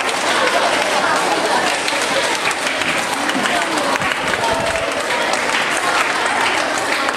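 A crowd of young children chatters in an echoing hall.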